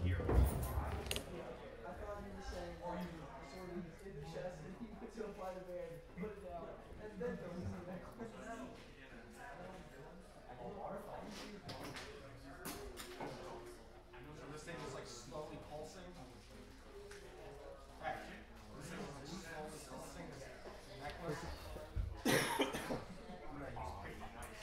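Small plastic pieces click on a table.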